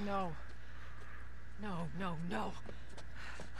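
A young woman speaks in a distressed, pleading voice.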